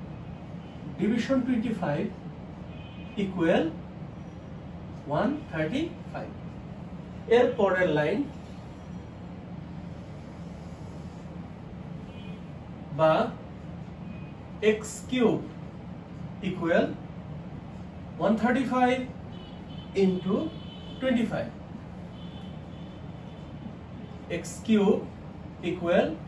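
A man speaks calmly and clearly nearby, pausing often, as if explaining.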